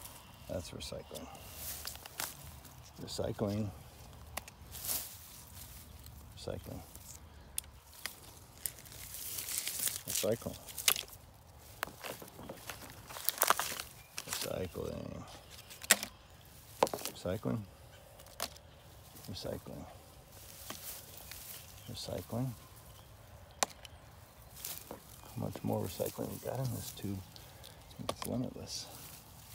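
Small plastic pieces clatter into a plastic bucket.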